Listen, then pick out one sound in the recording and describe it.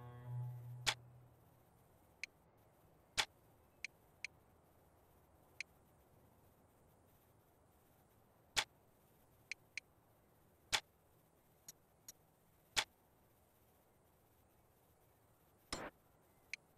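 Menu clicks and blips sound as options are selected.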